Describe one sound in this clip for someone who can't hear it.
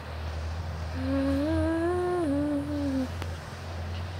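A young boy speaks in a drawn-out, sing-song voice close to the microphone.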